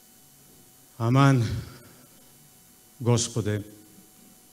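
A man sings sustained notes into a microphone, with pauses between phrases.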